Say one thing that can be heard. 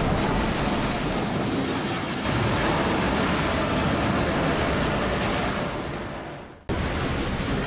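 Waves crash and roar in a storm.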